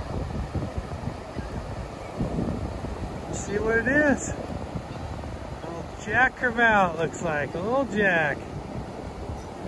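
Waves wash and break steadily on the shore.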